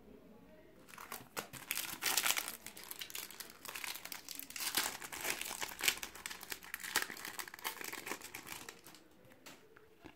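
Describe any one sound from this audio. Foil wrappers crinkle and rustle as they are torn open.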